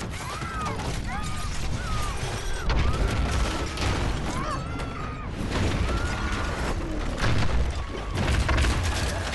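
A storm wind roars and howls loudly.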